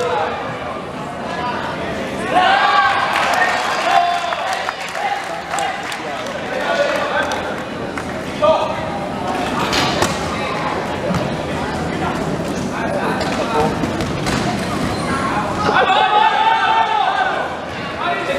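Wheelchairs roll and squeak on a hard floor in a large echoing hall.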